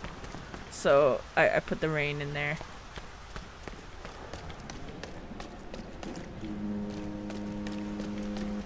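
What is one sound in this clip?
Footsteps run on wet pavement.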